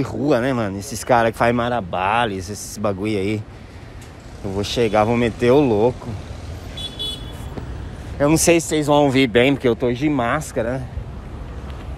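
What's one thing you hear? A young man talks with animation nearby.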